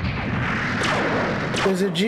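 A laser gun fires with a loud electric blast.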